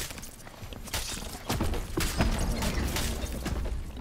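A magic blast roars and crackles.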